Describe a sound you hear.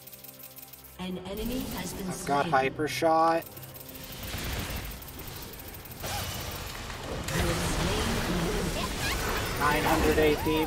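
Electronic game spell effects whoosh, zap and crackle during a fight.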